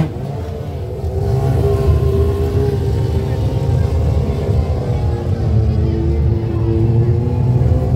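Motorcycle tyres squeal on pavement.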